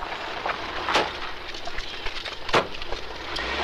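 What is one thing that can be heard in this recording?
A car door clunks open and shut.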